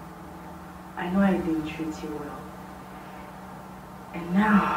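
A woman speaks calmly and close by into a microphone.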